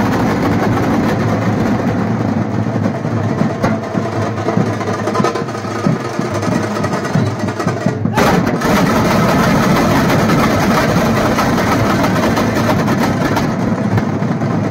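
A large group of drummers beats big drums loudly in a fast, steady rhythm outdoors.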